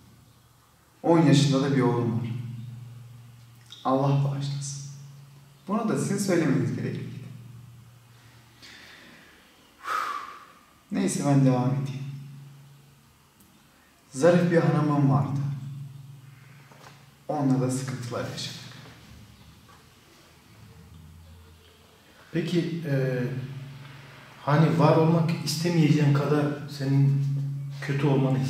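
A young man speaks calmly and clearly, close to a microphone.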